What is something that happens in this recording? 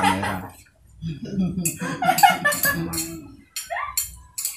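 A woman laughs nearby.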